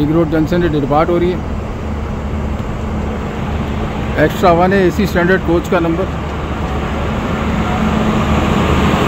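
A train rolls past close by, its wheels rumbling and clattering on the rails.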